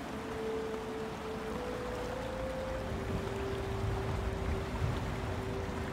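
Footsteps crunch on a rough concrete path.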